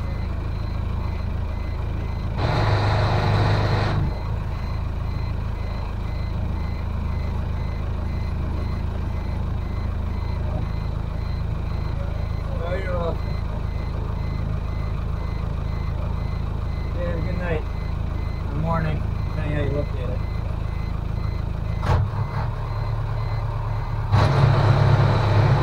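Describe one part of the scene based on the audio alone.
A boat engine hums steadily, growing louder at moments.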